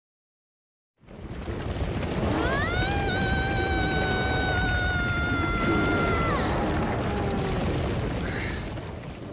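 A herd of large animals thunders past, hooves pounding.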